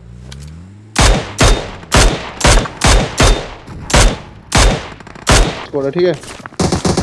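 A rifle fires a rapid series of sharp shots.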